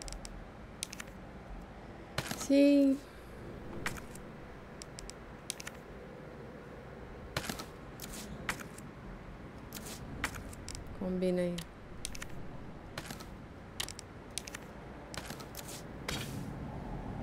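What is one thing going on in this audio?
Short soft clicks tick again and again as menu items are selected.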